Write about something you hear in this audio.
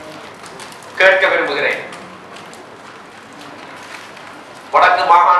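A middle-aged man speaks firmly into microphones in an echoing hall.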